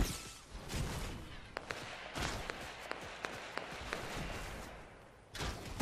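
Footsteps run over grass.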